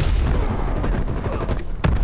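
An explosion bursts with a fiery roar.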